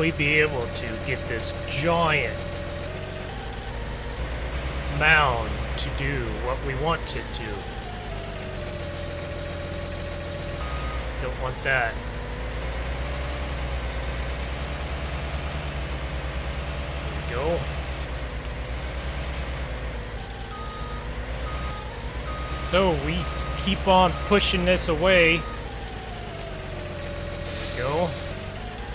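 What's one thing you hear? A heavy tractor engine rumbles steadily.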